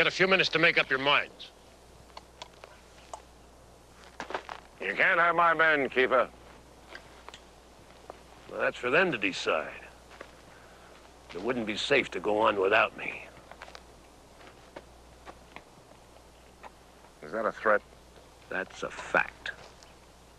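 A middle-aged man speaks calmly and slowly outdoors.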